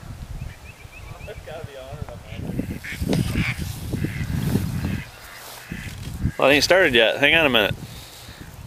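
Geese honk as they fly overhead.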